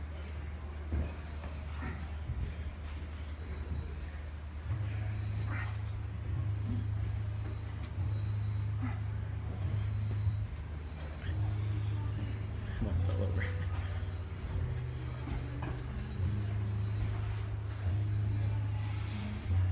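A weight stack clinks softly.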